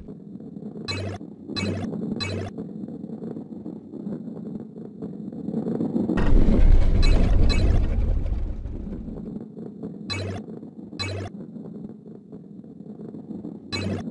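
Coins chime brightly as they are picked up.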